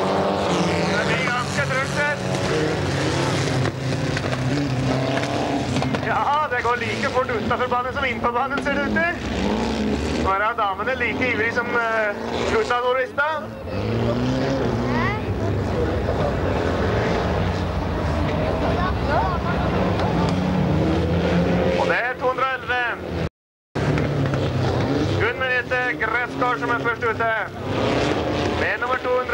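Race car engines roar and rev.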